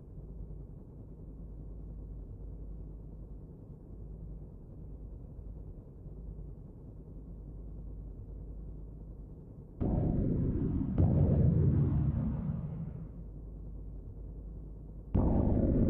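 A spaceship's engine hums low and steadily.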